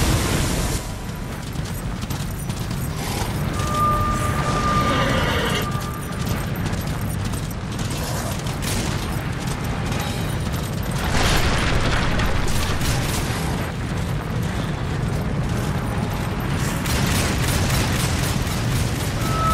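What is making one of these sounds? Hooves gallop fast and steadily.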